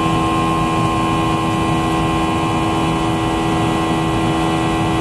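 An aircraft engine drones steadily with a constant hum.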